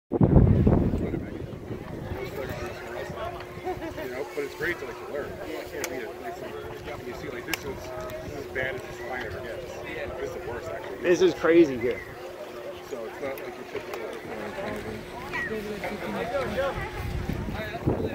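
Men, women and children chatter nearby.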